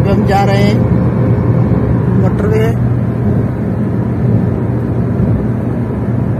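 Tyres and engine hum steadily inside a car moving fast.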